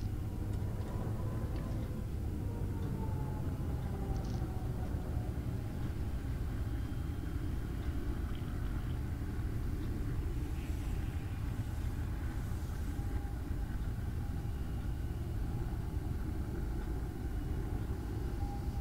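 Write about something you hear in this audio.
A vehicle's engine rumbles low and steady as it drives over rough ground.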